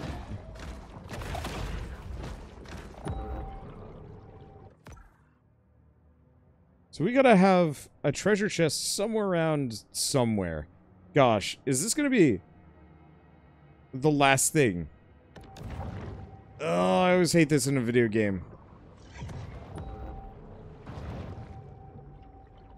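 A large sea creature swims with a muffled underwater rush.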